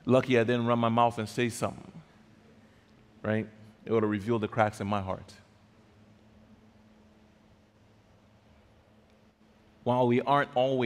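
A man speaks calmly through a microphone in a large echoing hall, pausing between phrases.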